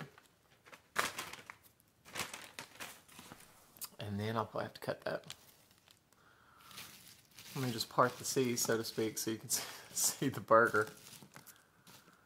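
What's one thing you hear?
Crispy fries rustle and crunch as hands pick them up.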